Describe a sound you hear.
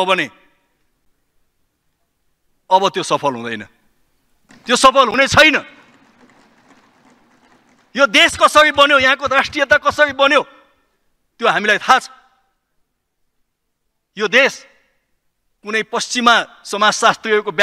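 A man speaks formally into a microphone, in short bursts with pauses.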